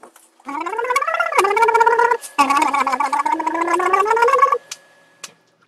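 A man blows a reedy, wavering tone on a small instrument close by, rising and falling in pitch.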